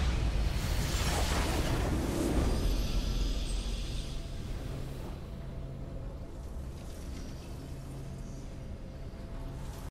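A game victory fanfare swells.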